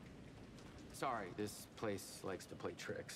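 A man speaks calmly and apologetically.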